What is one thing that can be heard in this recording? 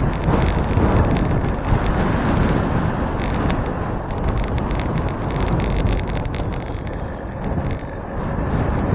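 Tyres hum on smooth pavement.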